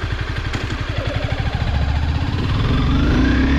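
A motorcycle engine revs up, rising in pitch.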